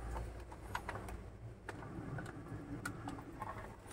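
Plastic creaks as a printer casing is lifted and tilted.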